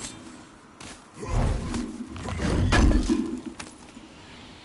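A heavy lid creaks and thuds open.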